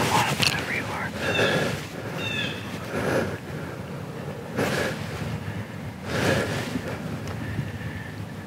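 A deer's hooves rustle through dry leaves nearby.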